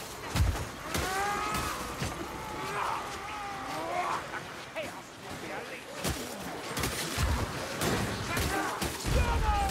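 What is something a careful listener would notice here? Creatures screech and snarl close by.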